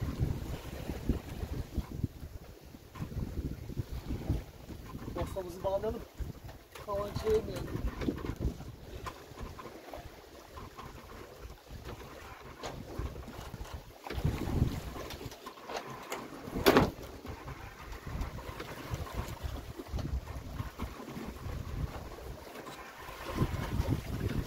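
Waves splash against a boat's hull.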